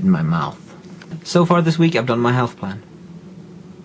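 A young man speaks close up with animation.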